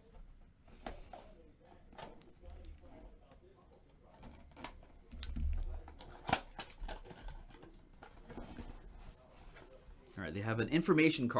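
Cardboard rustles and scrapes as a box is opened by hand.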